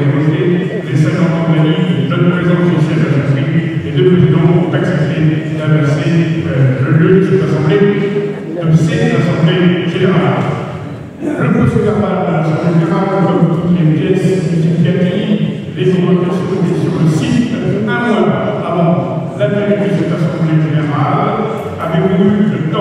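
A man speaks calmly into a microphone over loudspeakers in a large echoing hall.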